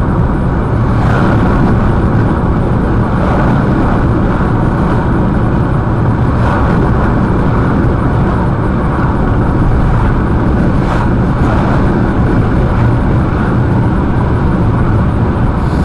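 Tyres roar steadily on the road inside a moving car.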